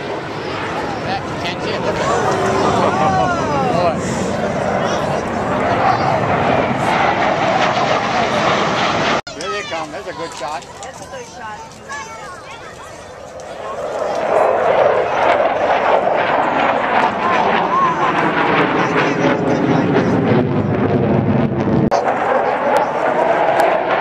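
Jet planes roar loudly overhead, rising and falling in pitch as they pass.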